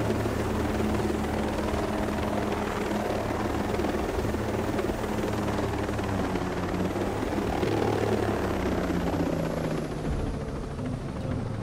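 A helicopter's rotor thuds steadily close by.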